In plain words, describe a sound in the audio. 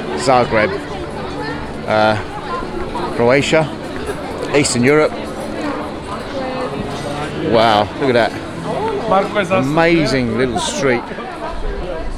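Adults chat casually nearby outdoors.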